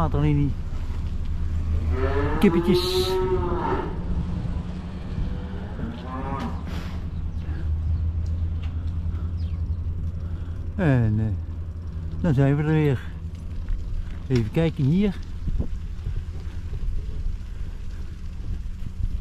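Bicycle tyres rumble steadily over paving and then grass.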